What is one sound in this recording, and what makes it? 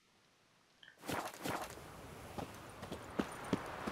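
Footsteps tread on stone outdoors.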